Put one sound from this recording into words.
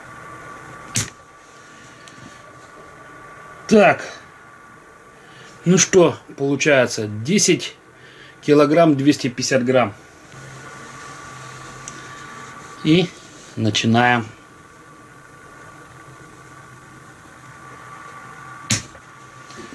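A flashlight switch clicks sharply.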